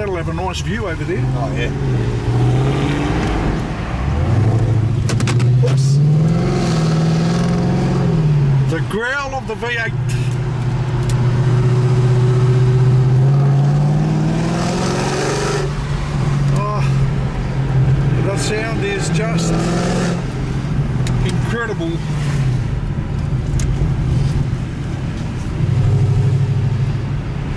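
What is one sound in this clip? A car engine hums from inside the car, revving up and dropping as the gears change.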